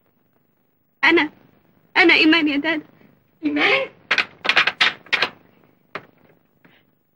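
A young woman speaks in a distressed voice close by.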